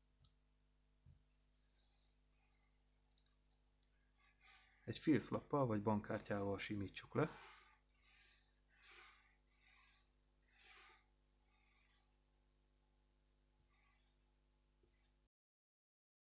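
Sandpaper rubs in short, repeated strokes.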